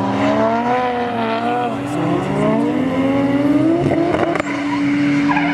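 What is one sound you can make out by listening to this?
A car engine revs and shifts gears as it races along a wet track.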